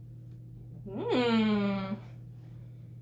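A young woman lets out a long, drawn-out exclamation.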